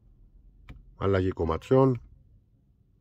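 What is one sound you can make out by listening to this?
Music plays from a car's speakers.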